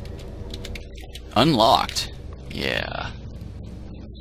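A short electronic chime rings out as a lock opens.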